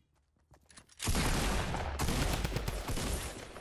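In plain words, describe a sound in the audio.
A gun fires a loud, rapid burst of shots.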